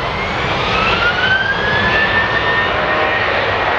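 A jet engine whines with a rising pitch.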